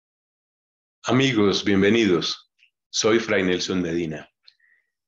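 A middle-aged man speaks calmly and warmly into a microphone over an online call.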